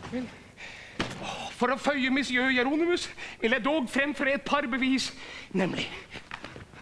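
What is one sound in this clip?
A man speaks loudly and with strong emotion in a large room.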